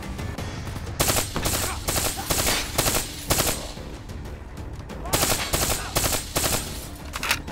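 Gunfire rings out in quick bursts of sharp shots, with a booming echo.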